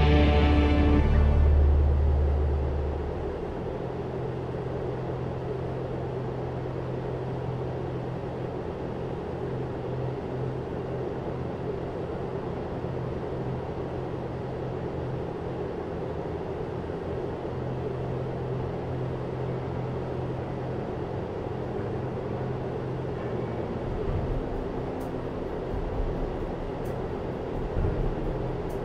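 A small propeller engine drones steadily from inside the cockpit.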